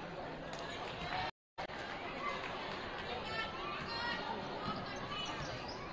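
Sneakers squeak on a hardwood court as players run.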